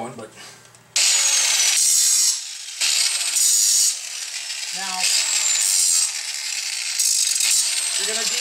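An angle grinder whirs.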